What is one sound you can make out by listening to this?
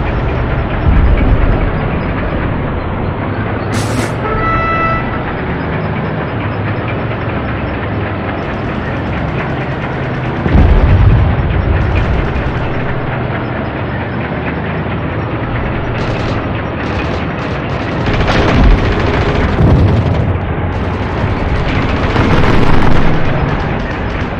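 Distant gunfire and explosions boom.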